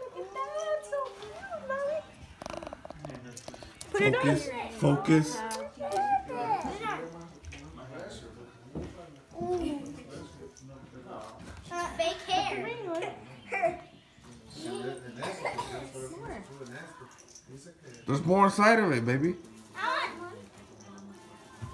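Young children talk and chatter nearby.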